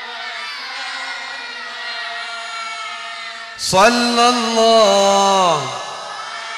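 A crowd of women chant a prayer together in a drawn-out, sung tone.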